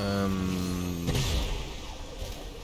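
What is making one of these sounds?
A burst of fire whooshes loudly.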